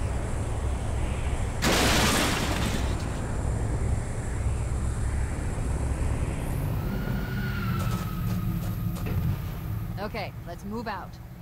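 A vehicle engine rumbles steadily over rough ground.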